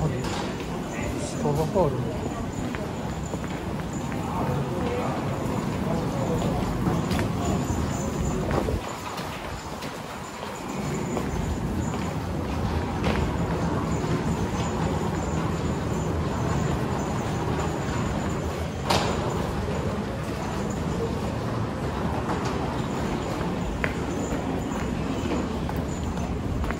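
A crowd murmurs in the background of a large echoing space.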